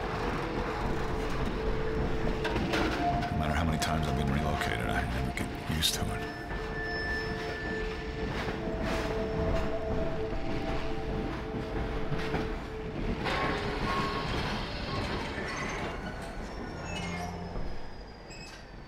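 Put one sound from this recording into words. A train rumbles and rattles along the tracks.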